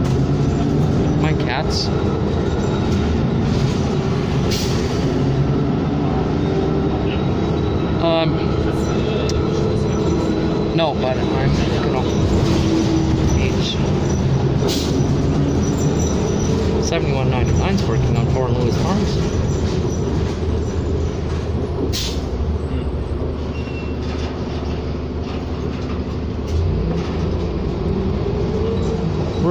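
The bus body rattles and clatters over the road.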